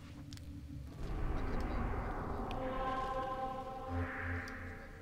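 A low electronic whoosh swells and then fades away.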